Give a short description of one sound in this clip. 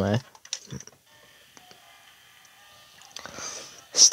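Soft electronic game music plays from a small speaker.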